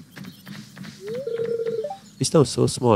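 A short rising chime sounds, followed by a steady beeping tone.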